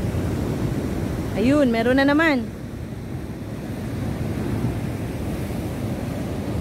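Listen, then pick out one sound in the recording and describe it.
Waves surge and crash against rocks with a steady roar.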